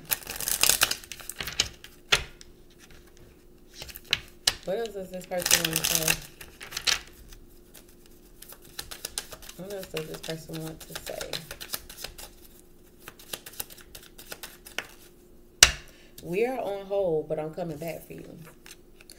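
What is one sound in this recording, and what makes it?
Playing cards riffle and slap as they are shuffled close by.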